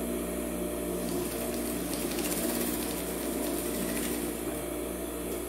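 A sewing machine stitches fabric in a quick run.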